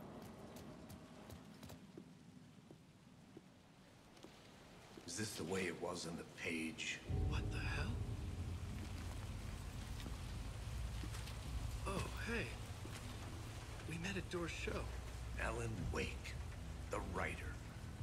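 Footsteps walk over wet pavement.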